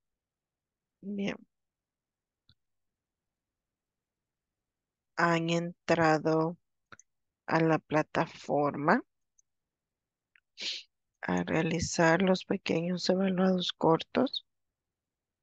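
A woman speaks calmly over an online call, in short bursts.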